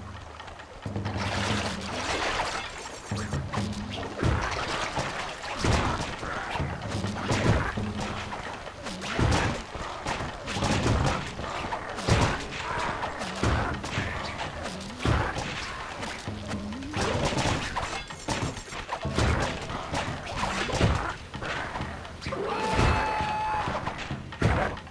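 Quick blows and swishing strikes of a fight ring out again and again.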